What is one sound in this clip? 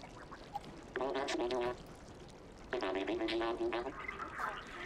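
A cat meows loudly.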